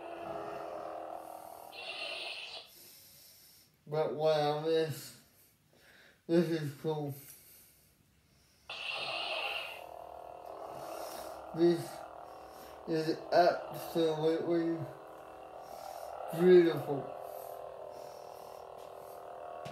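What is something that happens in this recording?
A toy lightsaber hums steadily.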